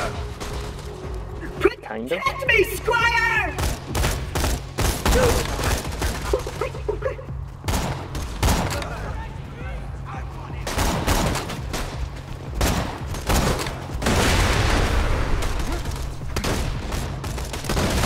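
A rifle fires sharp, loud shots one after another.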